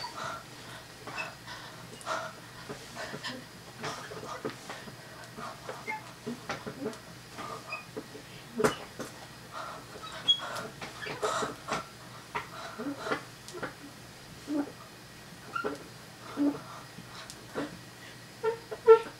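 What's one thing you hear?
A boy talks and laughs excitedly close to the microphone.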